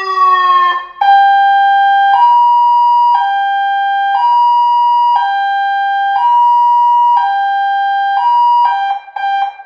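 An electronic siren alternates between two tones through a horn speaker.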